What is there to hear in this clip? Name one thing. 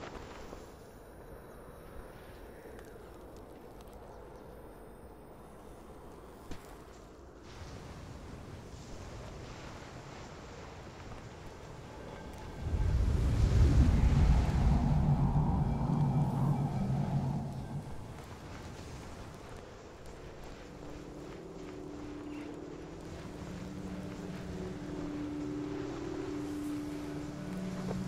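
Wind blows steadily outdoors, swelling loudly for a few seconds.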